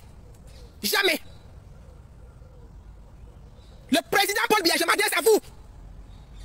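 A man speaks loudly and with animation, close to a phone's microphone, outdoors.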